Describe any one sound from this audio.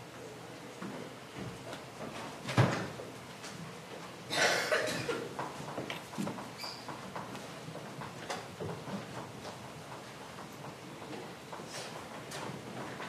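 People murmur and shuffle quietly in a room.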